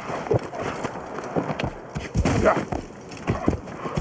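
A horse's hooves clatter at a gallop.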